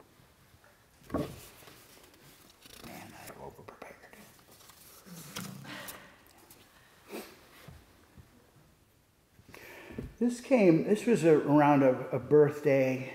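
An older man speaks calmly into a microphone, quietly at first and then louder.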